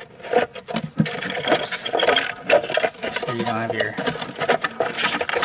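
Plastic parts click and rattle as hands fit them together.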